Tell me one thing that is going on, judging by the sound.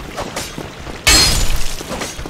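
Metal weapons clash in a sudden strike.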